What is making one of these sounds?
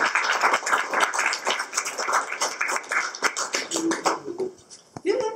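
A small audience applauds loudly and close by.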